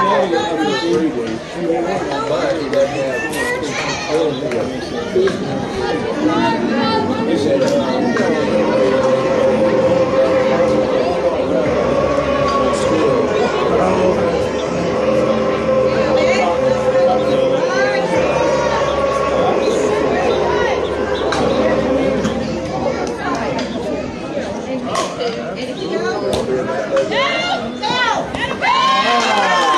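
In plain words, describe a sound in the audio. Young women chant and cheer loudly outdoors.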